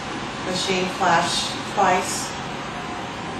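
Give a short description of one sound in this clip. A woman speaks briefly and quietly nearby.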